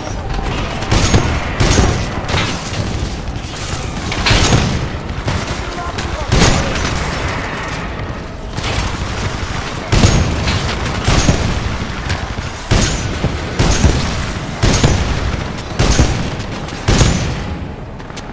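Gunshots boom loudly in bursts.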